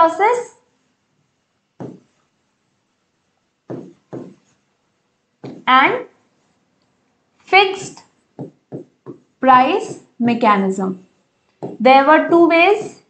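A young woman speaks calmly and clearly, as if explaining, in short phrases with pauses.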